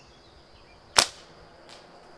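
A slingshot's band snaps as a shot is released.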